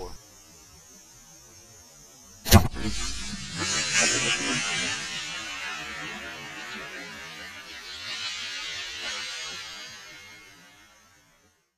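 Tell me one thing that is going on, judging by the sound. Leaves rustle softly in a light wind.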